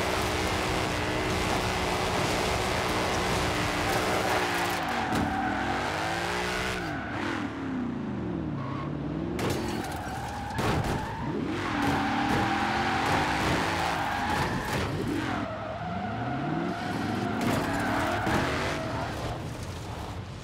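A car engine revs hard and roars, rising and falling in pitch.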